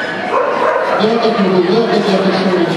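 A woman calls out commands to a dog.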